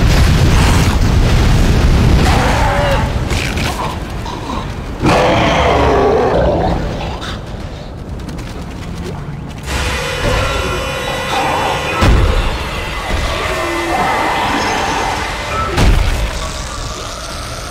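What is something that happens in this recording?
A creature screeches and snarls.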